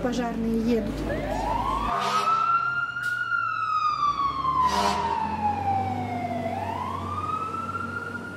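A fire engine siren wails through a loudspeaker, rising and falling.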